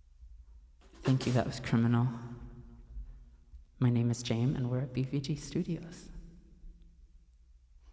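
A man speaks casually into a microphone.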